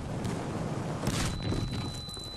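An explosion booms sharply.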